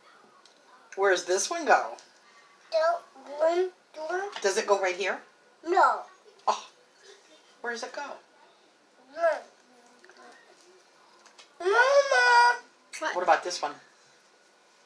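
A young boy talks close by in a high, lively voice.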